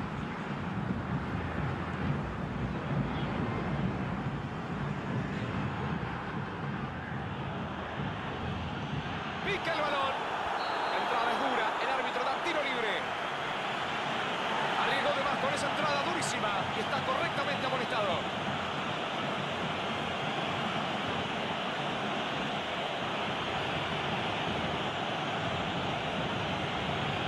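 A large crowd roars and chants steadily in a stadium.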